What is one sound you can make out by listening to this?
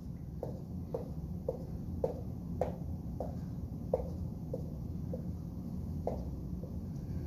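A marker taps dots onto a whiteboard in a quick, uneven rhythm.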